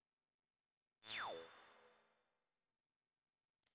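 A game transition sound swoops downward and rings out.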